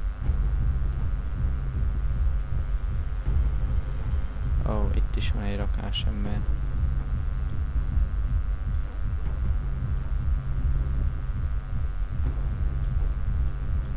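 Footsteps run over gravel and rubble.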